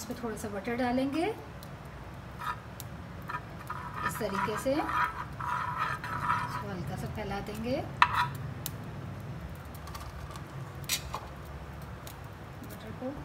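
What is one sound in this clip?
A spatula scrapes and taps against a metal pan.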